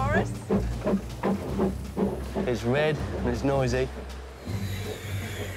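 A steam train rumbles along the track.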